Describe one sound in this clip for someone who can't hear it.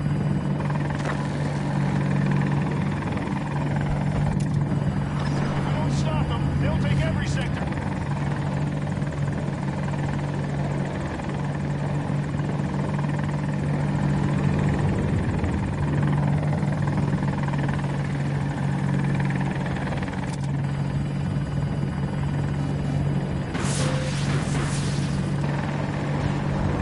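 A helicopter's rotor drones loudly and steadily.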